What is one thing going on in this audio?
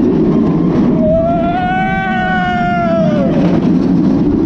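A middle-aged man laughs and shouts with excitement up close.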